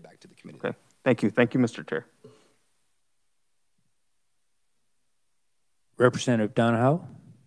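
A young man speaks clearly into a microphone.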